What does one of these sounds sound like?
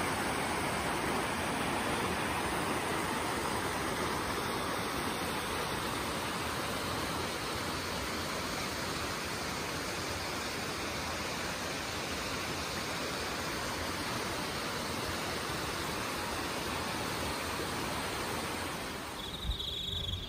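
A stream rushes steadily over rocks.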